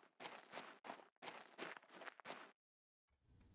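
Footsteps thud steadily on soft ground.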